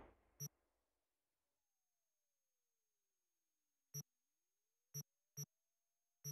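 Short electronic menu clicks sound several times.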